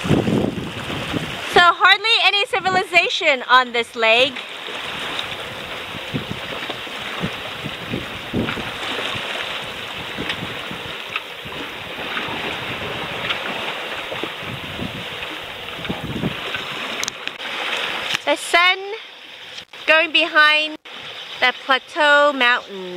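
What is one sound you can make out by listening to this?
Small waves lap and splash on open water.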